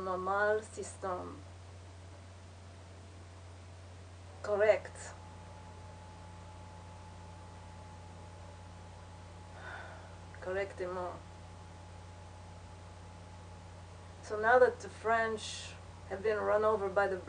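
A young woman speaks calmly close by, in short bursts with pauses.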